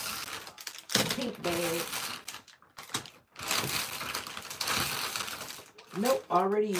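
A plastic candy bag crinkles in a hand.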